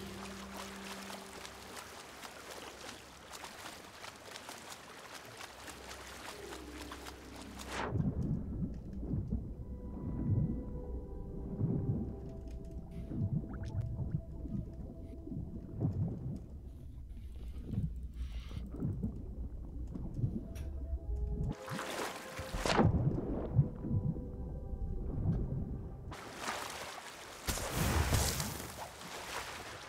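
Waves splash and wash at the water's surface.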